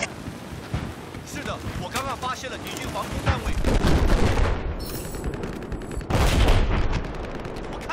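A heavy gun fires in loud booming shots.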